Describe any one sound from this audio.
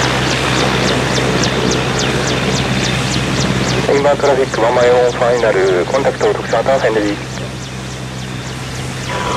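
A helicopter's turbine engines whine loudly and steadily.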